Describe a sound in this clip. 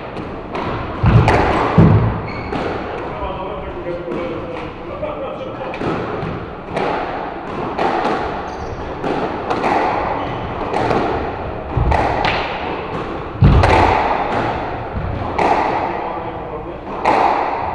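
Sneakers squeak and thud on a wooden floor.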